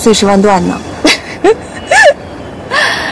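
A woman laughs briefly.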